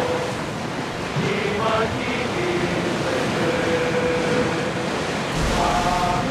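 Water splashes and rushes against the bow of a moving ship.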